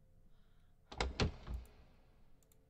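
A door handle clicks and a door thuds open.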